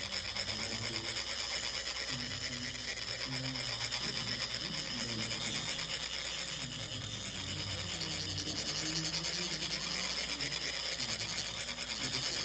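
Metal funnels rasp steadily as sand is poured.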